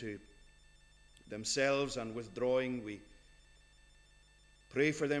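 A middle-aged man speaks slowly and emphatically into a microphone, in a slightly echoing room.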